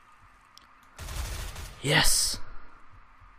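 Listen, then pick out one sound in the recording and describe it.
Gunshots crack in a rapid burst.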